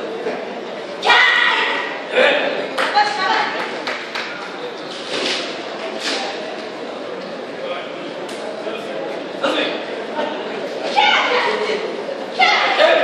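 Young men shout loudly as fighters spar.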